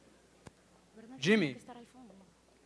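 A young man speaks into a microphone, heard through loudspeakers in a hall.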